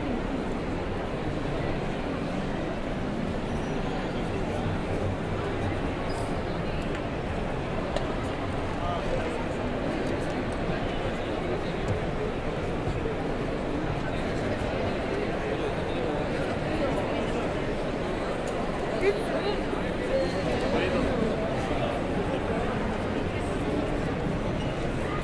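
A crowd murmurs and chatters steadily in a large, busy hall.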